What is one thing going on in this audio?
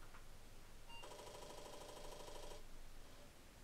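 A computer gives a short electronic beep as it restarts.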